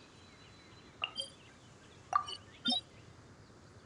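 Soft interface clicks sound a few times.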